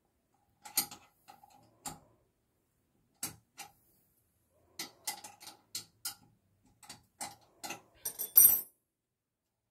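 Metal tools clink and tap against a pipe fitting.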